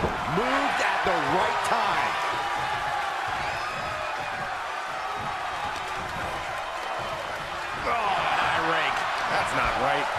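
A large crowd cheers and murmurs steadily in an echoing hall.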